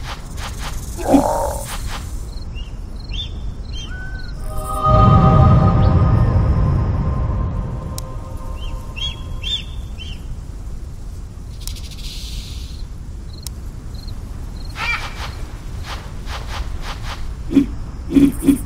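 A big cat snarls and attacks in a game.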